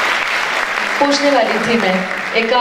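A middle-aged woman speaks into a handheld microphone.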